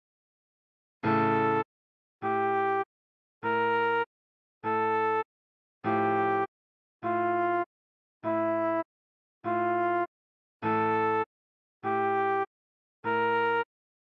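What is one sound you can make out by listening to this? A trombone plays a run of short, evenly spaced notes.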